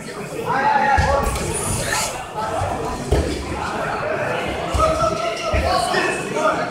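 Wrestlers thud onto a padded mat.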